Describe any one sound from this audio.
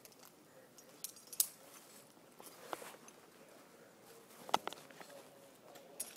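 Metal climbing gear clinks and jangles.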